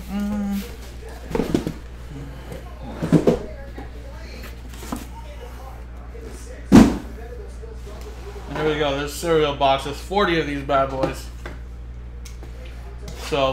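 Cardboard boxes rustle and knock as hands handle them.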